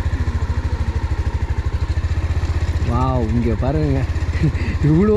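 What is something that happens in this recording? A motorcycle engine idles with a steady, rapid low throb.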